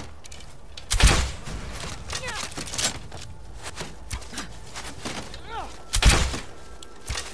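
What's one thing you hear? A crossbow fires with a sharp twang.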